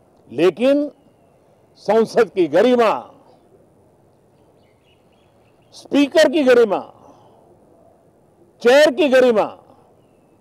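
An elderly man speaks calmly into microphones in short phrases, with pauses between them.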